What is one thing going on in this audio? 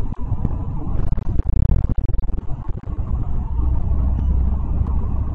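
A vehicle's engine rumbles low and steadily from inside the cab.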